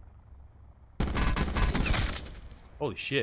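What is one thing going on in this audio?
Rapid gunfire rattles in a loud burst.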